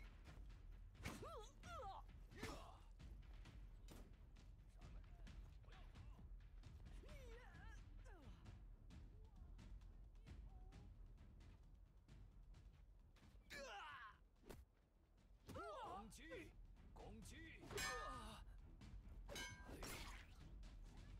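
Men cry out and grunt while fighting.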